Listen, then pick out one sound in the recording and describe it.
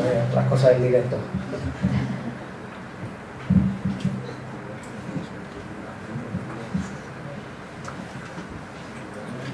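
A man speaks to an audience in a large room.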